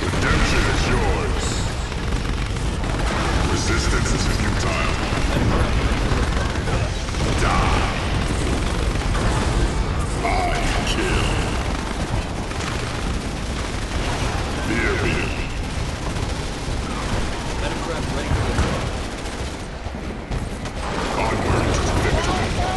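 Explosions boom and crackle repeatedly.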